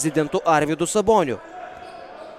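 A referee's whistle blows loudly in a large echoing hall.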